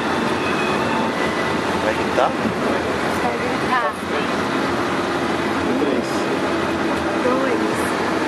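A vehicle engine rumbles steadily while driving.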